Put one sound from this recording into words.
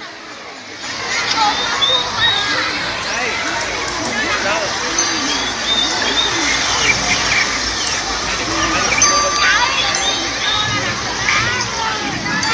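A children's song plays loudly through outdoor loudspeakers.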